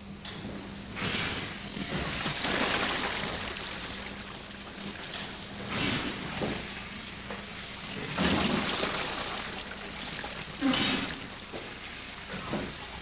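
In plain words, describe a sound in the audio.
Water pours and splashes into a pool.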